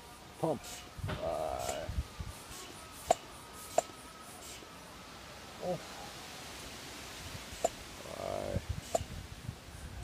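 A floor pump hisses as air is pushed through it.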